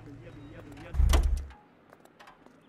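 A car door thuds open.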